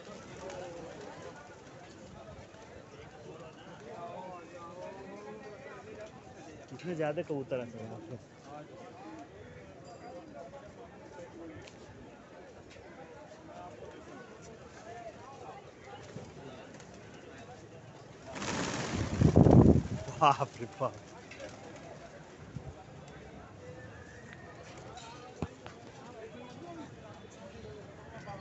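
Many pigeons coo softly and steadily nearby.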